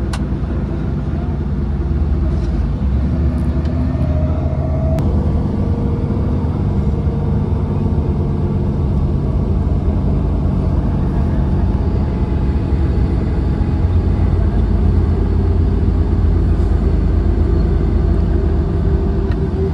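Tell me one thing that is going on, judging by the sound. A bus engine rumbles steadily from inside.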